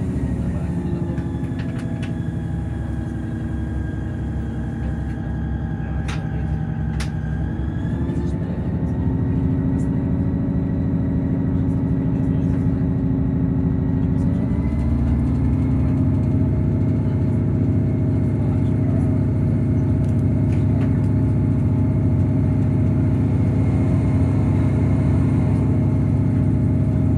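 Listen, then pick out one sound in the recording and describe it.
A train's engine hums and whines steadily, rising in pitch as the train speeds up.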